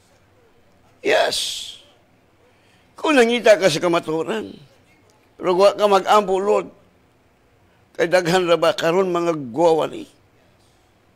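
A middle-aged man speaks slowly and earnestly into a close microphone, with pauses between phrases.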